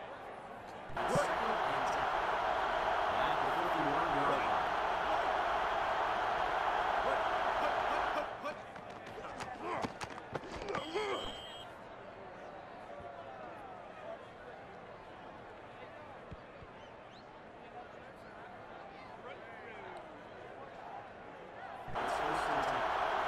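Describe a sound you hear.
A large stadium crowd roars loudly.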